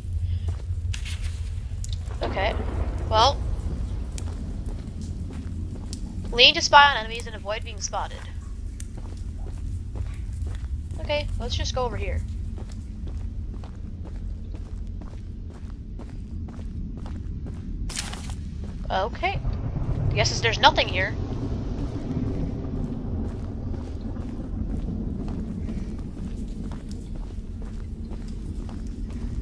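Footsteps tread slowly along a wooden walkway.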